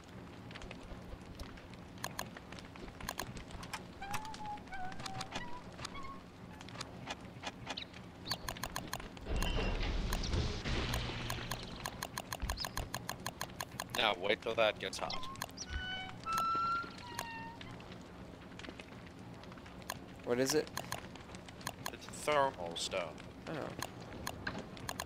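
Soft menu clicks tick rapidly, one after another.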